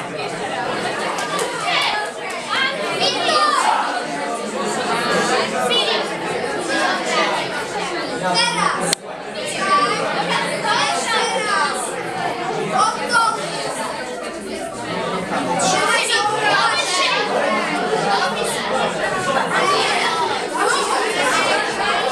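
Teenage girls laugh.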